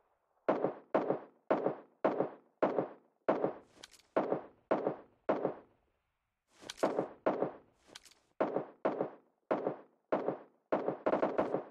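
A rifle fires shot after shot in a quick, steady series.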